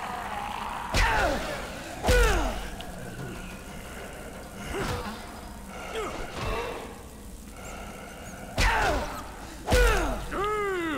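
Heavy blows thud into flesh.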